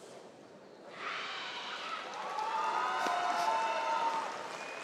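Young women shout sharply in unison.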